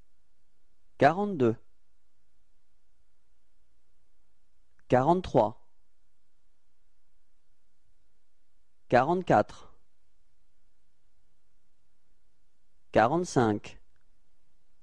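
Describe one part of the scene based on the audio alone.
A young man speaks short words calmly and clearly, with pauses between them.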